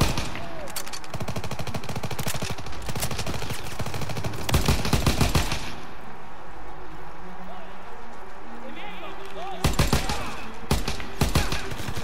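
A machine gun fires rapid, loud bursts.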